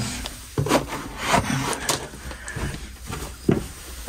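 A rubber mat slaps down onto a floor.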